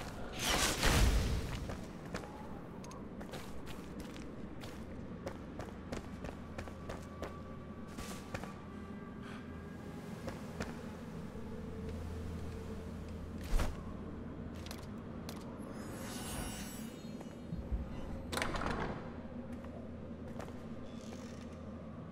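Footsteps crunch on stone and gravel.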